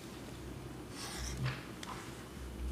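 Papers rustle on a desk.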